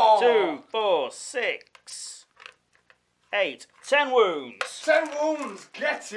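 Dice rattle and clatter in a plastic bowl.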